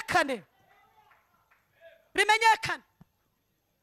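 A woman sings out loudly into a microphone.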